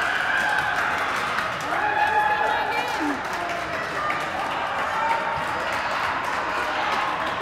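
Young women cheer and call out loudly in an echoing gym.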